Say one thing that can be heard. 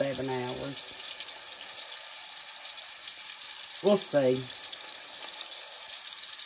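A spoon stirs and scrapes through thick sauce in a metal pan.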